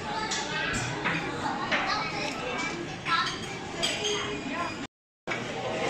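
Cutlery clinks against a plate.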